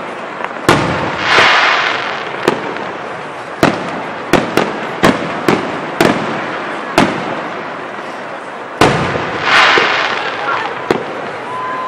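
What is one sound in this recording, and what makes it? Fireworks crackle and sizzle after bursting.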